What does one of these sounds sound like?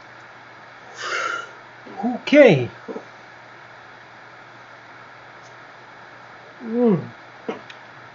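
A young man groans and sighs close to a microphone.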